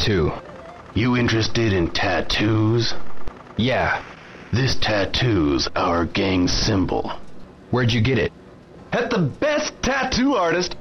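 Another man answers in a low, relaxed voice, close by.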